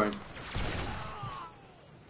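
A pistol fires several shots at close range.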